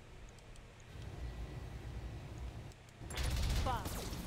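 Heavy guns fire in bursts.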